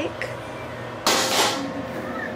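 An egg smashes onto a hard floor.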